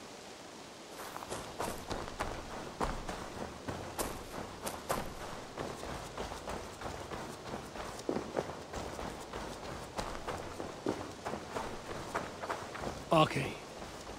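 Footsteps crunch quickly over leaves and dirt.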